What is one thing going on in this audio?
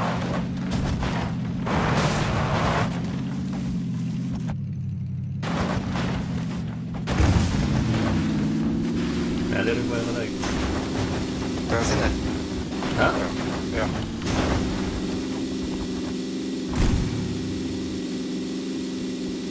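A car engine revs hard as the car drives over rough ground.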